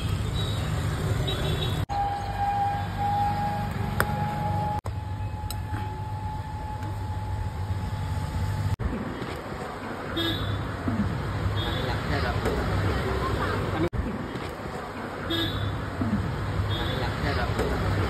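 A metal ladle scrapes and clinks against a pan.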